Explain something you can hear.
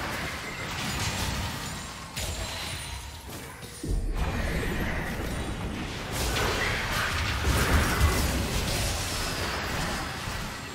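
Magic spells burst and blows clash in a fast fight.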